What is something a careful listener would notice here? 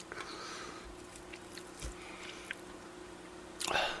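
A fork clinks against a food tray.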